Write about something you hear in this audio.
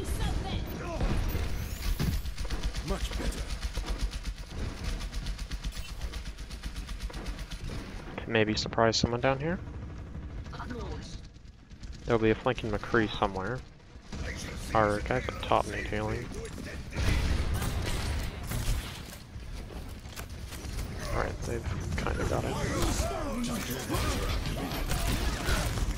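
Rapid gunfire rattles in a video game.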